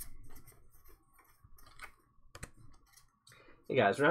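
Playing cards rustle and slide against each other as they are shuffled.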